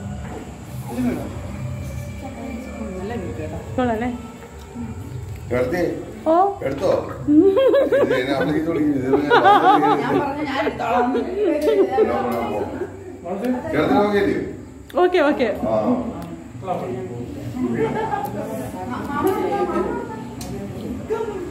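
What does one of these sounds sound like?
A group of men and women talk and laugh together close by, in a lively, overlapping way.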